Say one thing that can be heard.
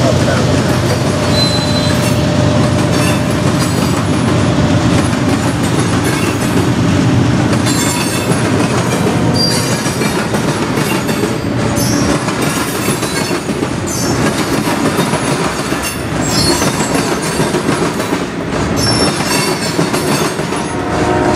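A crossing bell rings.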